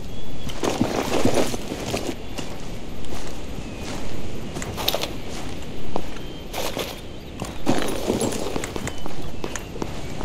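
Footsteps crunch steadily on gravel and pavement.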